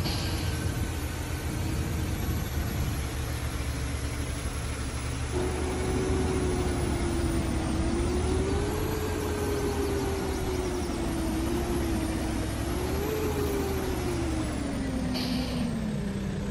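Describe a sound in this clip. A heavy diesel dump truck engine rumbles and pulls away under load, its pitch rising and falling.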